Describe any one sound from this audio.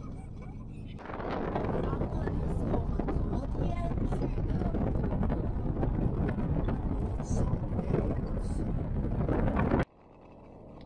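Wind blows hard against the microphone.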